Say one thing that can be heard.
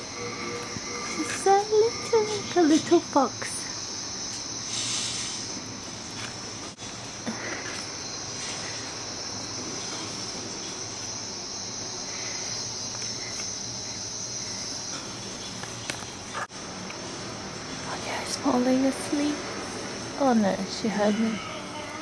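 A puppy whines and yelps softly.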